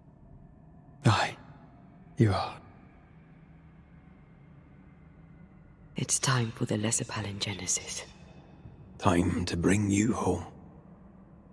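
A man answers in a low, calm voice, close by.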